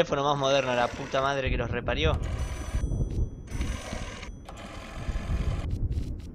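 A rotary telephone dial whirs and clicks as it turns back.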